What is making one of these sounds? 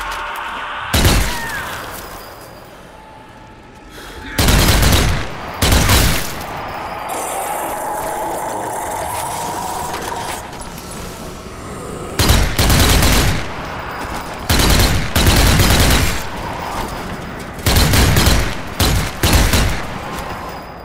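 Rifle shots ring out loudly, each followed by a rolling echo.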